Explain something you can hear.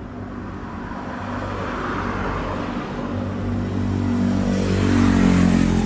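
A vehicle engine approaches and grows louder.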